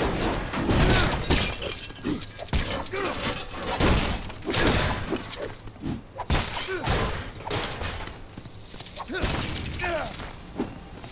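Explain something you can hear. Small coins jingle and clink again and again.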